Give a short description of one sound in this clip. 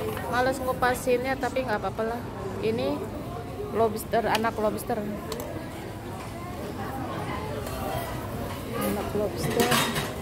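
Metal tongs clink against a metal tray.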